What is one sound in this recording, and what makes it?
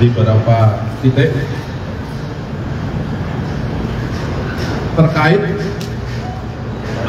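A man reads out a statement through a microphone.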